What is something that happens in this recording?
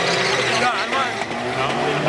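Tyres squeal and spin on the tarmac.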